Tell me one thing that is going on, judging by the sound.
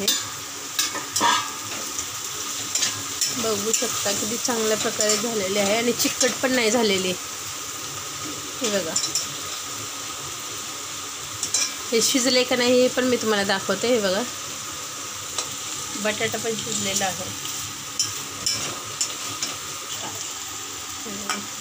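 A metal spatula scrapes and clatters in a metal pan.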